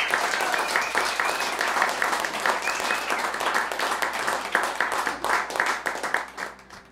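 An acoustic guitar is strummed in quick, steady strokes.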